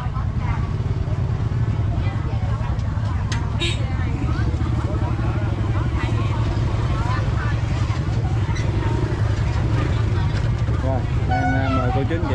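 Women talk with animation close by.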